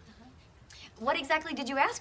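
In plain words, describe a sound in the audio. A young woman speaks briefly.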